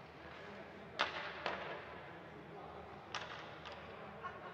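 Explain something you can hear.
Hockey sticks clack sharply, echoing through a large arena.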